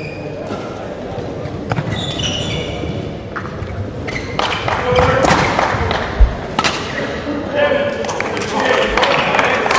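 Shuttlecocks are struck with sharp pops in a large echoing hall.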